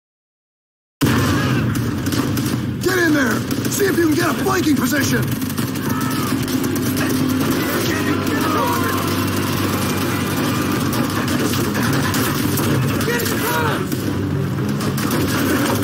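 A man shouts orders through the noise of battle.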